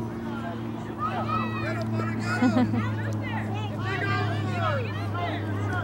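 Young children shout and squeal excitedly outdoors.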